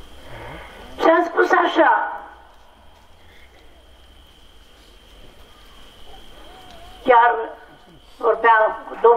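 An elderly man chants loudly into a microphone, heard through loudspeakers.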